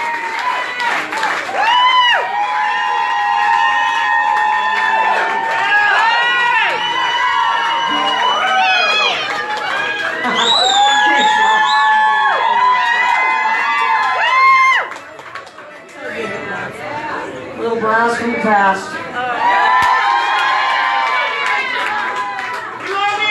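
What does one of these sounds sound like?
A fiddle plays a lively, sliding tune through loud amplification.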